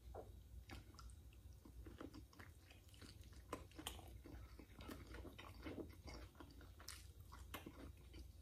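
A man smacks his lips and slurps while eating.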